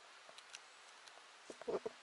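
A bracket fungus is pulled off a tree trunk.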